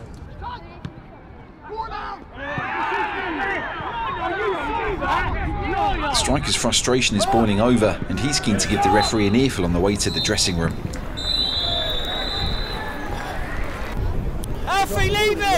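A crowd murmurs and cheers in an open stadium.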